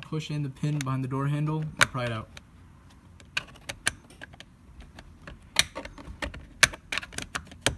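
A screwdriver scrapes and clicks against plastic trim.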